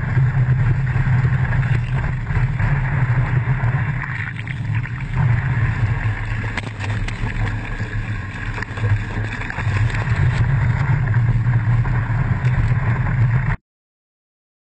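Water rushes and splashes close by.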